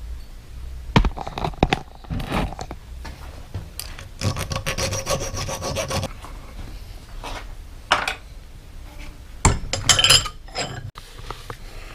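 A thin metal rod clinks and taps against a steel vise.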